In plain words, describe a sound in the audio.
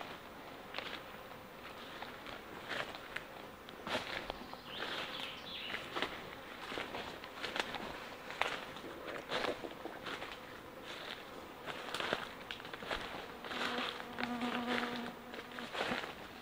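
Footsteps crunch and rustle through leaves and undergrowth.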